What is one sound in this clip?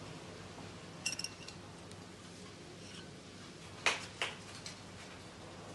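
A metal spoon scrapes and clinks against a glass bowl.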